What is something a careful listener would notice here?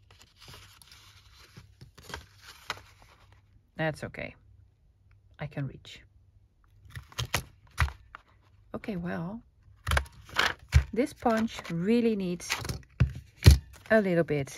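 A paper punch clunks as it is pressed through card.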